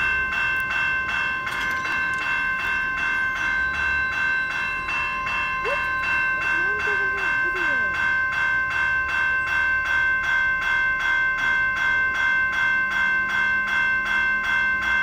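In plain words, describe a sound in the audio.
A railroad crossing bell rings rapidly and steadily.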